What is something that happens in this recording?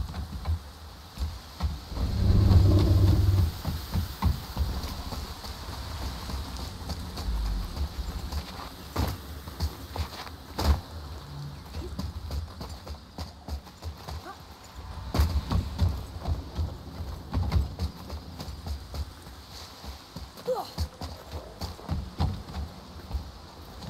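Heavy footsteps thud on wood and stone.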